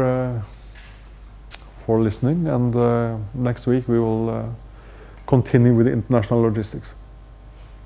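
A man lectures calmly, heard from across a large room.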